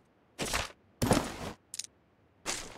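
Gunshots crack out.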